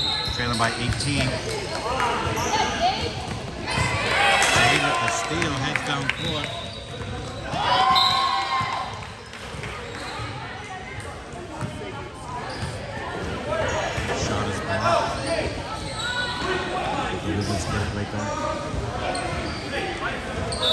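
A crowd of spectators chatters and cheers, echoing in a large hall.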